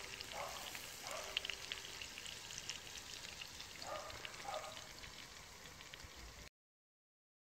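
Meat sizzles and crackles over high heat.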